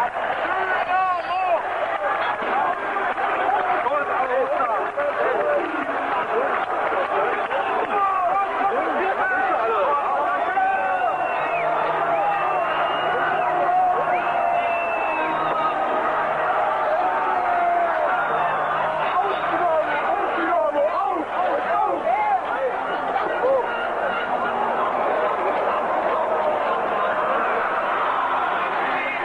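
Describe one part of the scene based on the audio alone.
A large stadium crowd roars, chants and whistles outdoors.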